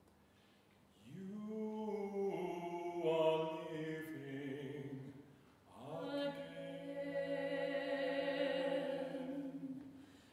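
A man sings in a large echoing hall.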